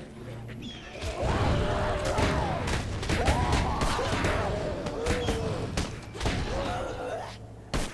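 Blows land with dull thuds in a scuffle.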